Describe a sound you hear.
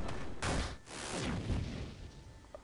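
A fireball explodes with a roaring burst.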